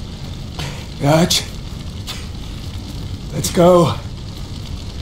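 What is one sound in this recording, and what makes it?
A man with a rough voice speaks weakly and strains.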